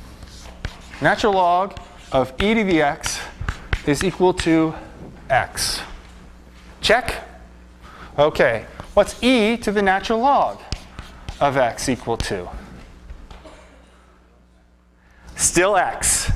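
A man lectures with animation in a large echoing room.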